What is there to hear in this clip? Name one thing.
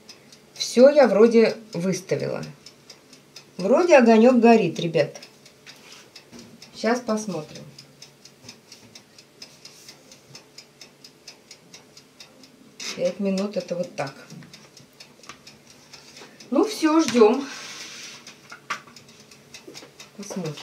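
An oven timer ticks steadily.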